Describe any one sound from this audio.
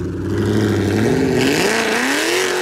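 A sports car engine revs up sharply and roars as the car pulls away.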